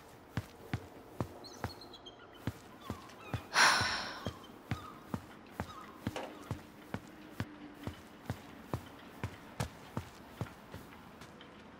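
Footsteps tap along a walkway.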